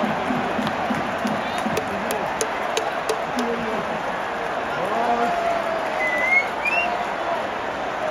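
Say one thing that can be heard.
A large stadium crowd cheers and shouts in a loud, echoing roar.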